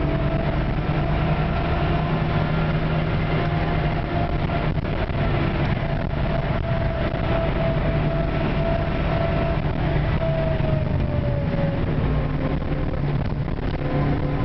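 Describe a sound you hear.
A car engine roars loudly from inside the cabin, its pitch shifting as the car speeds up and slows down.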